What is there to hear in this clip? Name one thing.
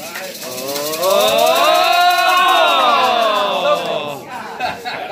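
A man cheers loudly with rising and falling excitement.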